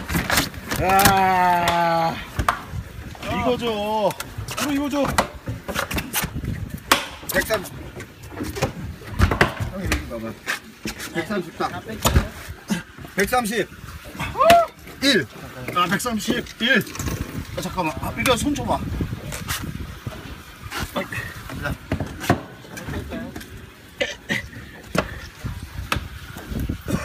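A large fish knocks and slaps against a hard deck as it is handled.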